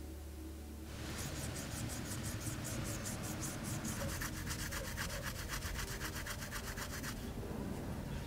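Something rubs in quick strokes against a metal spoon lure.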